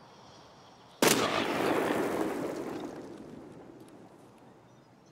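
A rifle shot booms and echoes away slowly.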